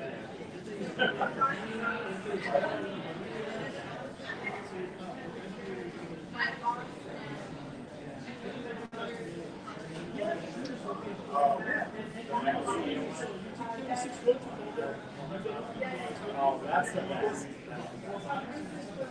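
Several adults talk casually at nearby tables.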